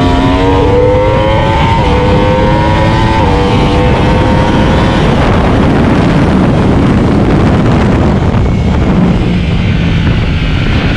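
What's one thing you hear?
A motorcycle engine roars at high revs, shifting gears as it speeds up.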